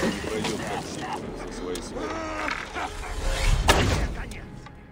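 A loud blast bursts, followed by crackling flames.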